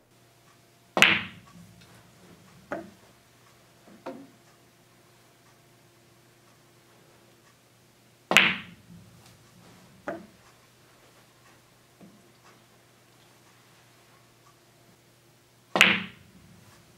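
A cue strikes a billiard ball with a sharp crack.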